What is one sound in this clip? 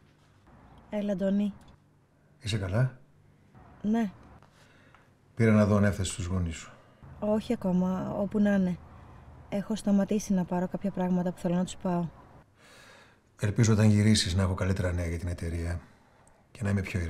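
A middle-aged man talks calmly on a phone, heard close.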